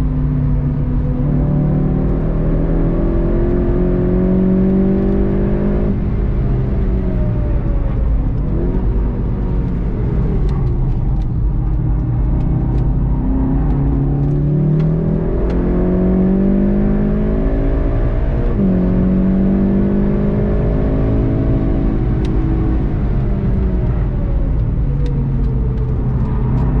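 A car engine revs hard, rising and dropping as it shifts gears.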